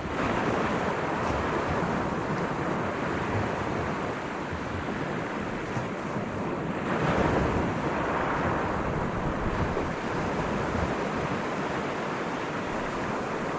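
Waves wash onto a pebble shore nearby.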